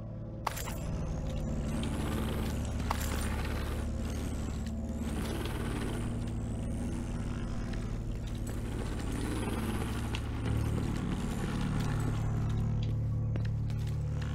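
A hovering drone whirs with a high, wavering whine.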